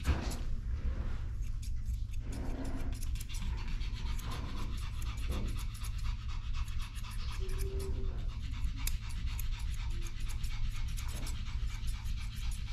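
Scissors snip quickly and repeatedly through fur.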